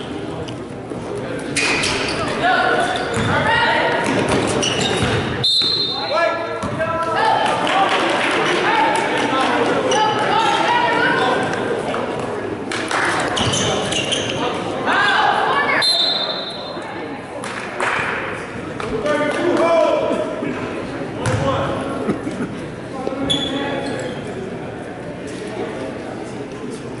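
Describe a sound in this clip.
Spectators in a large echoing gym cheer and call out.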